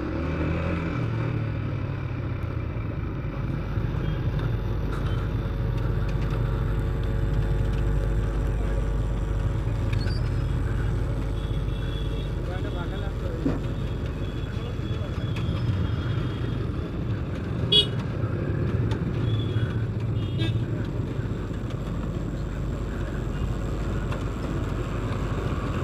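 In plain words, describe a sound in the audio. A motorcycle engine idles and putters in slow traffic.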